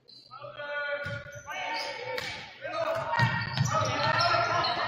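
A volleyball is hit with sharp slaps in a large echoing gym.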